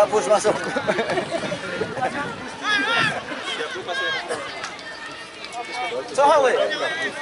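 A crowd of spectators chatters and shouts outdoors at a distance.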